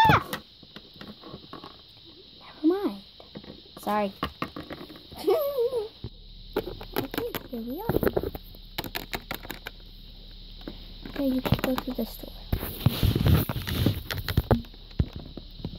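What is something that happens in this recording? Small plastic toys click and tap against a hard surface.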